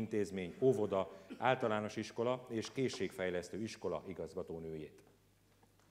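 A man speaks calmly through a microphone and loudspeakers in a large hall.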